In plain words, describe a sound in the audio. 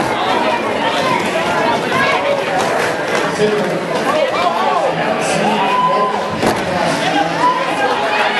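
Roller skates roll over a concrete floor.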